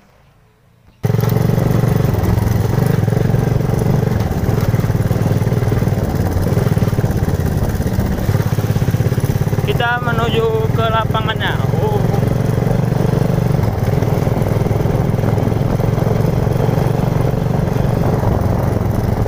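A motorcycle engine roars loudly and steadily while riding.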